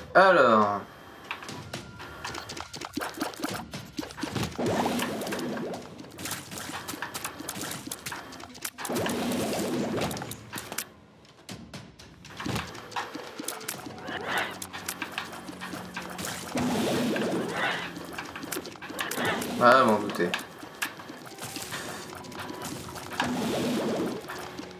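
A video game's shooting and splatter effects play in quick bursts.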